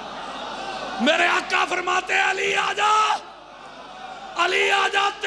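A large crowd of men chants loudly in unison in a big echoing hall.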